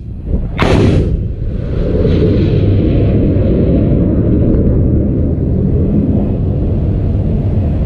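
A rocket motor roars steadily as a missile climbs away.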